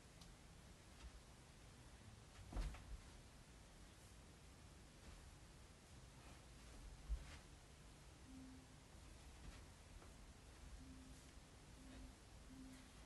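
Feet thump on the floor as a woman moves.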